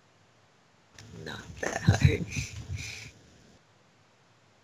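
A teenage boy laughs close to a microphone over an online call.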